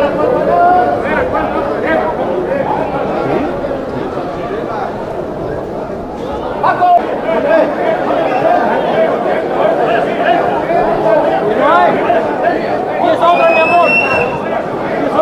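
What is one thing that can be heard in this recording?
A crowd of men and women murmurs and chatters outdoors.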